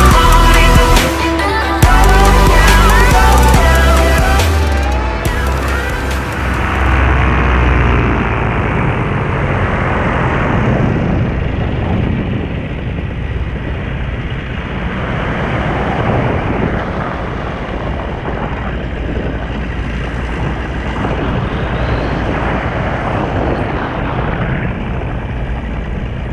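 Wind rushes steadily past in flight, high in the open air.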